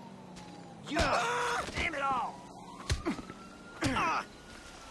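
Fists thump hard against a body in a brawl.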